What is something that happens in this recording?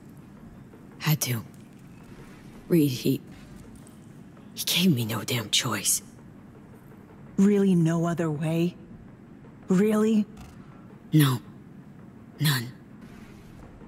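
A woman speaks in short, halting phrases, close by.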